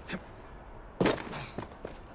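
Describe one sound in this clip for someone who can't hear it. A body lands with a heavy thud.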